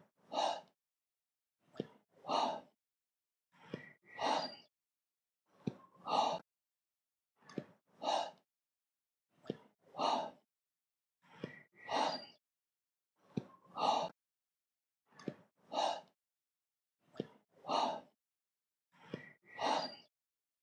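A man calls out short counts in a steady rhythm, about every two seconds.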